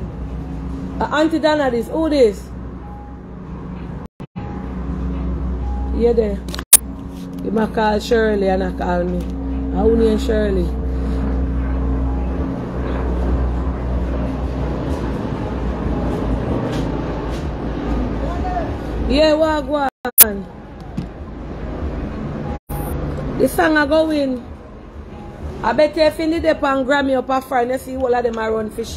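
A young woman talks with animation close to a phone's microphone.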